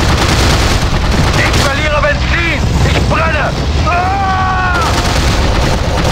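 Aircraft machine guns fire in bursts.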